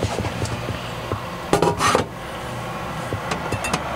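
A ceramic cup knocks against a metal sink.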